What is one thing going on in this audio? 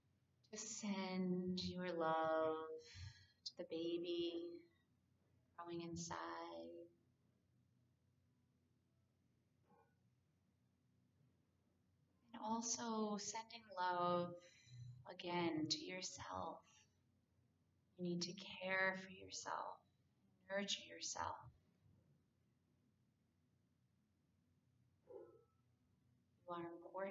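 A woman speaks calmly and softly into a close microphone, with long pauses.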